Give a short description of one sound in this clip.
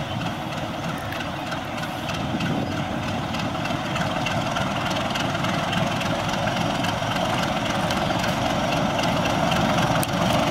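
A diesel locomotive engine rumbles loudly close by, growing louder as it approaches.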